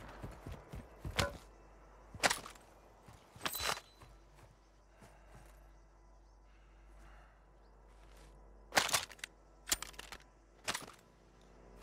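Gear clicks and rattles as items are picked up.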